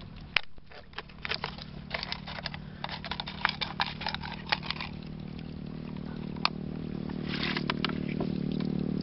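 Water splashes as hands move in a shallow tub.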